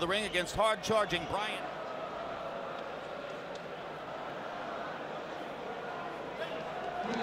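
A large crowd murmurs in a big echoing arena.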